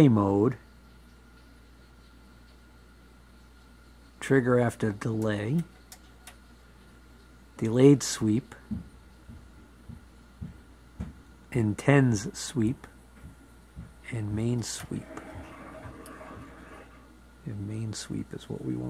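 Knobs click as they are turned.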